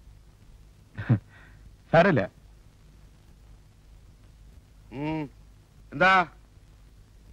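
A man speaks loudly and with animation nearby.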